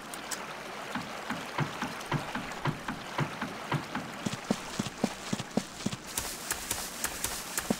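Footsteps thud on a wooden bridge, then on grass.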